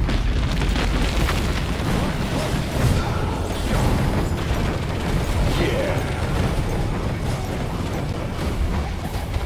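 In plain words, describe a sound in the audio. Spells and gunfire crackle and blast in a busy fight.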